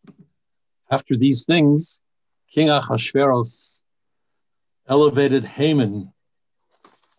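An elderly man talks with animation close to a microphone.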